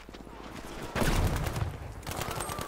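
An explosion booms nearby.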